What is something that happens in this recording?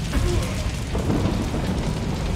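A rifle fires a burst of loud shots.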